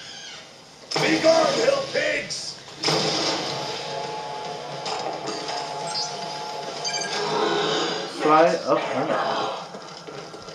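A futuristic gun fires loud, buzzing energy blasts.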